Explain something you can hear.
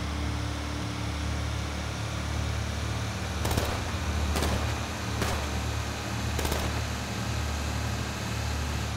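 A heavy truck engine drones steadily as it drives along a road.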